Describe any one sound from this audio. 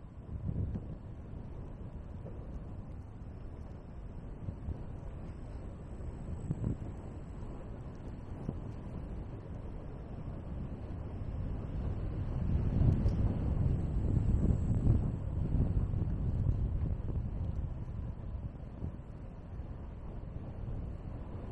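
Wind rumbles steadily across a moving microphone outdoors.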